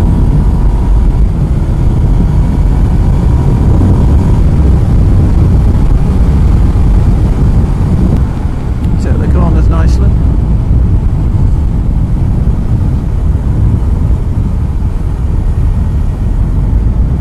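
Wind buffets loudly and roars steadily.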